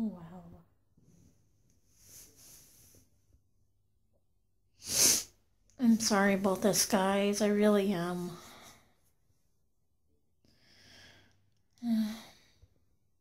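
A woman talks close by in a flat, tired voice.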